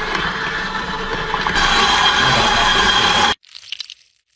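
An electric mixer whirs loudly.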